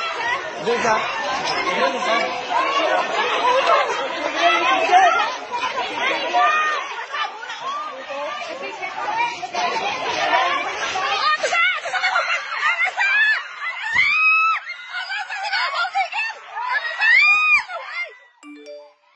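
A crowd of young people shout and yell excitedly outdoors.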